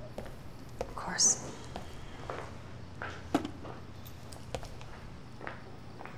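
Footsteps cross a room.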